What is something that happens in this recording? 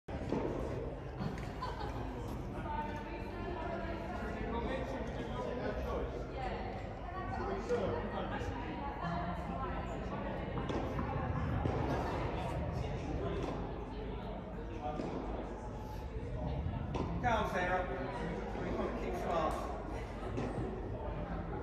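Men and women chat in a large echoing hall.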